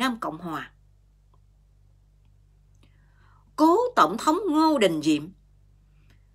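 A middle-aged woman speaks calmly, close to a phone microphone.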